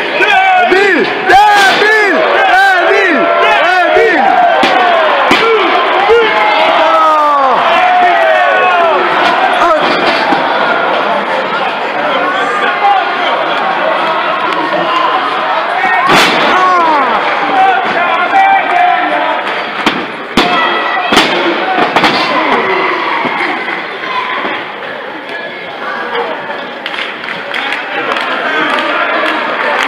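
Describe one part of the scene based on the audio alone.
A large crowd cheers, whistles and shouts in a big echoing hall.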